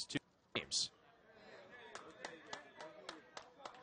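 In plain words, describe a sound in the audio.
A crowd of spectators chatters quietly outdoors.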